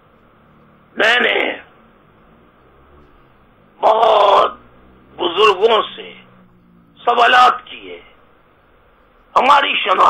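An older man speaks calmly into a close microphone, in short bursts with pauses.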